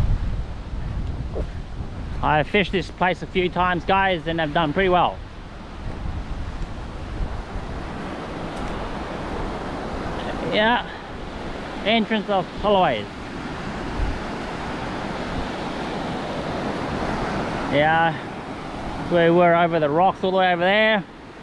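Waves wash onto the shore steadily.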